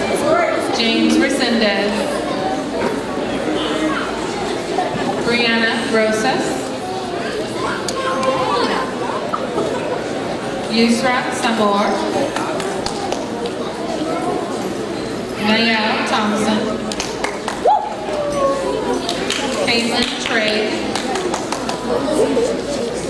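A woman reads out names over a loudspeaker in a large hall.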